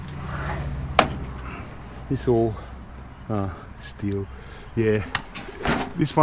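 A metal sink clunks and rattles as it is handled.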